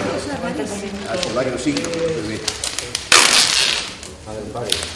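Plastic sheeting rustles and crinkles as a large roll is unwrapped.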